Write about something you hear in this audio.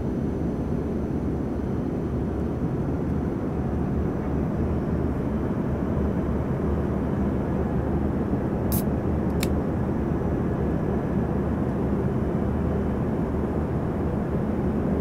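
A jet airliner's engines roar steadily, heard from inside the cabin.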